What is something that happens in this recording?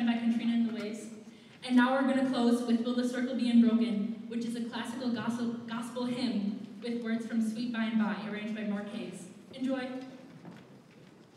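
A young woman sings solo into a microphone.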